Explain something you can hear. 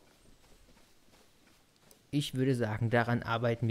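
Footsteps rustle quickly through tall grass.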